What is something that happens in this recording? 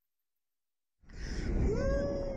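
A young man shouts and yells excitedly up close.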